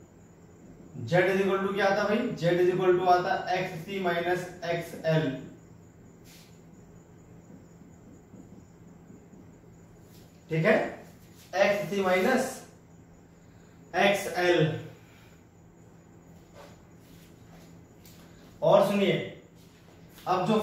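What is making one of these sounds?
A young man speaks calmly in explanation, close by.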